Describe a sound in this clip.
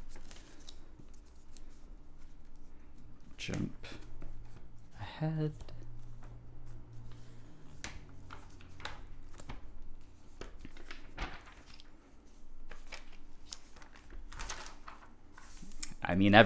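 Glossy magazine pages rustle and flip as they are turned.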